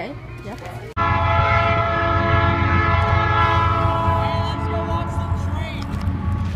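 A train horn blares steadily in the distance.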